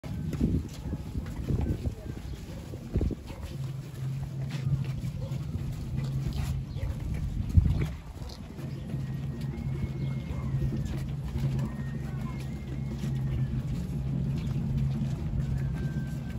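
Many footsteps shuffle and scrape on a cobbled street.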